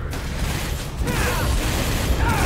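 A fiery blast explodes with a loud roar.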